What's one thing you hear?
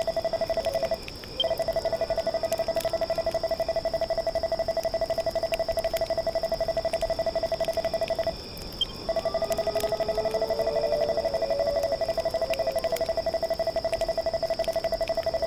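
Rapid electronic blips chatter on and on, with two short pauses.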